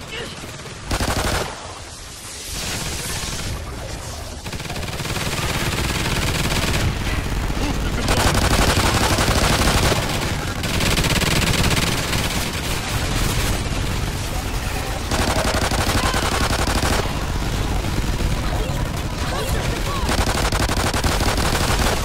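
A pistol fires sharp, loud shots in quick bursts.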